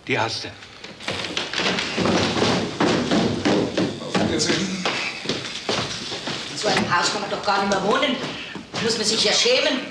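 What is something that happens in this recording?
Several people talk at once in an echoing stairwell.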